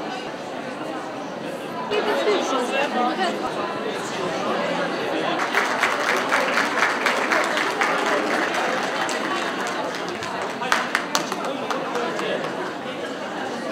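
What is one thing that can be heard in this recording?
A large crowd of men and women chatters in a big echoing hall.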